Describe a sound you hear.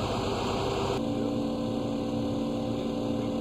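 A diesel engine hums steadily through its exhaust.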